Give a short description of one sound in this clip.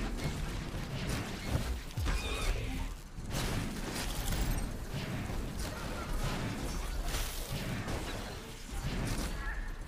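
Magical blasts and clashing battle effects crackle and boom in quick succession.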